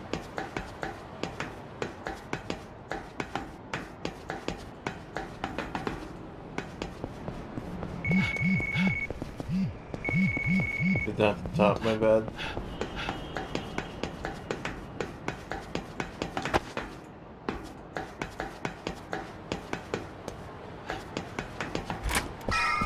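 Footsteps clank steadily on metal grating.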